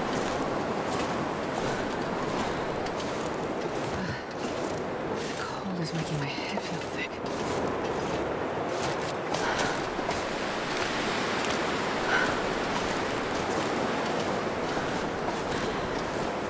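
Strong wind roars steadily in a snowstorm.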